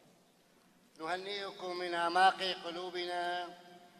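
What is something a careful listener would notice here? An elderly man chants into a microphone.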